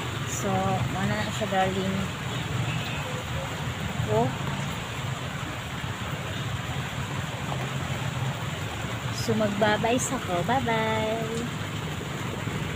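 Rain patters steadily on the ground outdoors.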